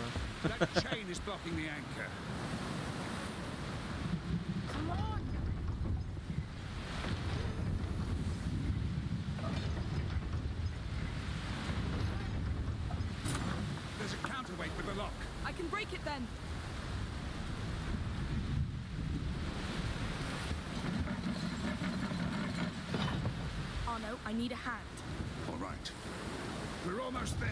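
Stormy sea waves crash and roar in strong wind.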